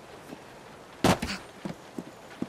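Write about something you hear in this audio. A loud thud of feet landing on a roof.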